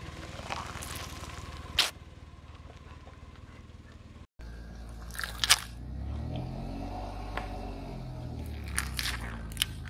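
A car tyre crushes brittle plastic with sharp cracks and snaps.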